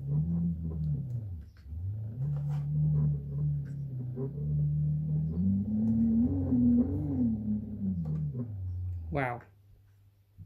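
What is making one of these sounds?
A small motor hums loudly, its pitch wavering up and down, then whines up sharply and cuts off.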